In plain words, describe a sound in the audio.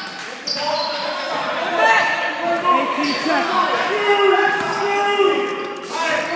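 Young men call out to each other in an echoing gym.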